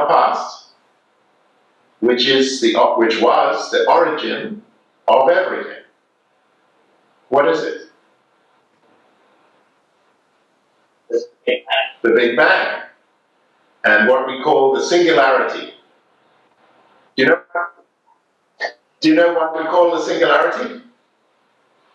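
A middle-aged man speaks with animation through a microphone, in short bursts with pauses.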